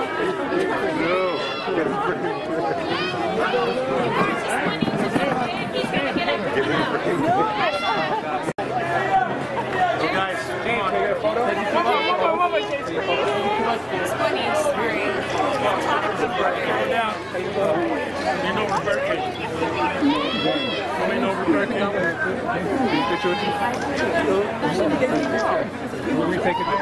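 A crowd of men and women chatter and call out close by, outdoors.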